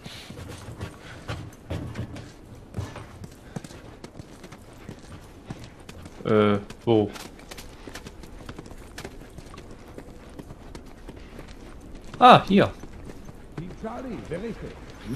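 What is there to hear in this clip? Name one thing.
Footsteps shuffle slowly on a hard floor.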